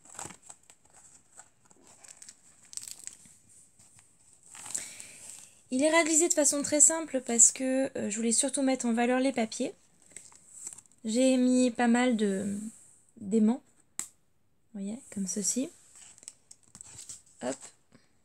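Stiff card pages rustle and tap as they are turned by hand.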